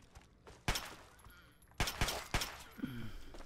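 A pistol fires several sharp shots in a row.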